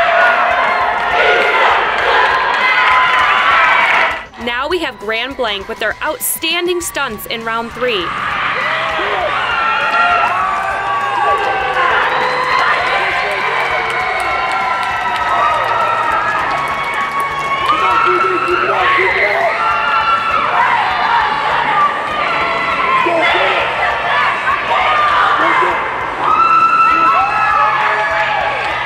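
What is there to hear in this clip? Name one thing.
A team of teenage girls shouts a cheer in unison, echoing through a large arena.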